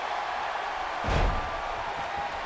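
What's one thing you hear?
A body slams onto a wrestling ring mat with a heavy thud.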